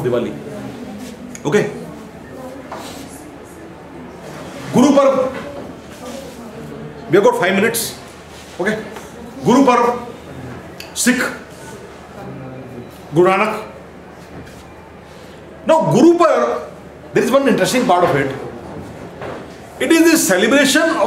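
A man lectures in short bursts in a room with some echo.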